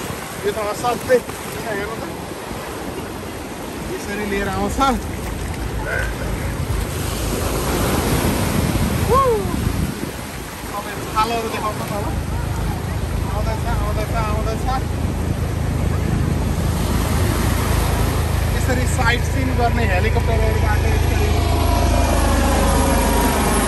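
Waves wash and break onto the shore.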